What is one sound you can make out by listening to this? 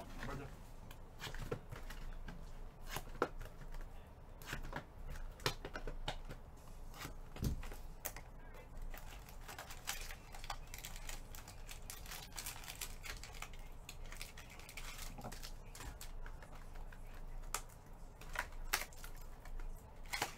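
Card wrappers crinkle and tap as a box is handled.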